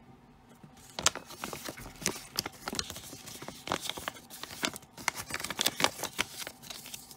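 Paper crinkles and rustles as a leaflet is folded up.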